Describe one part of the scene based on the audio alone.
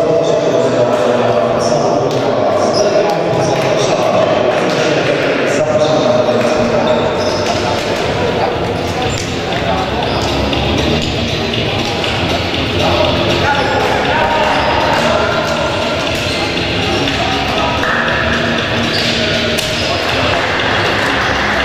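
Players slap hands together in quick high fives.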